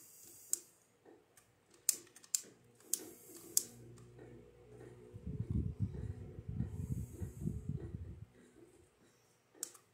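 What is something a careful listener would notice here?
Short clicking taps of blocks being placed come from a television speaker.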